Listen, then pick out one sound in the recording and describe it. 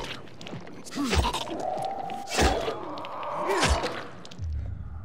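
A creature growls and snarls close by.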